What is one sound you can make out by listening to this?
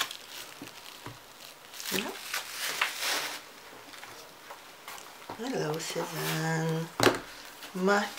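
Paper pads rustle and slide against each other.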